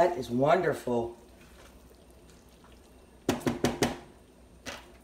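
A spatula scrapes and stirs food in a frying pan.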